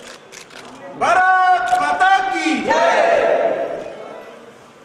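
Several men shout together loudly in chorus.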